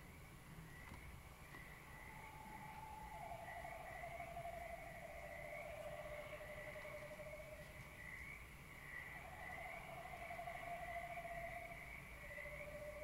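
Electronic music with steady, wavering held tones plays through loudspeakers in a large room.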